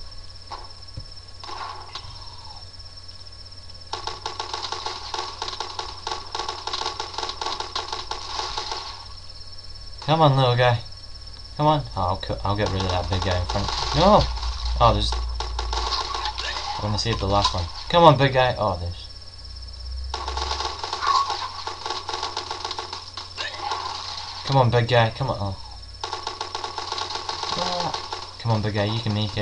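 Rifles fire repeated shots.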